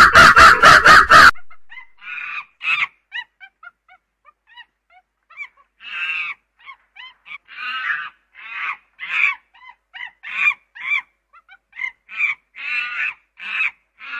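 A chimpanzee screams and hoots loudly, close by.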